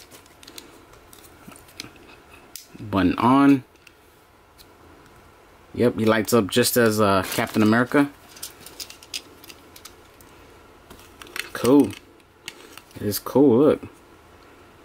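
Small plastic toy figures click and tap softly as hands handle them.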